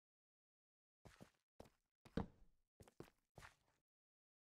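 Footsteps crunch on stone.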